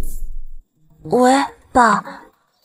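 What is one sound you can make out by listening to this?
A young woman speaks into a phone.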